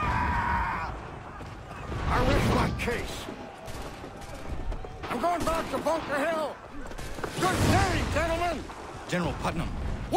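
A man speaks firmly and confidently, close by.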